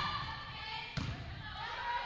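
A volleyball is struck with a thud.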